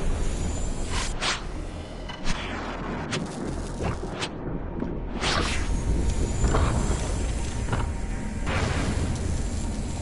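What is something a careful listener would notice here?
Electric energy crackles and zaps in bursts.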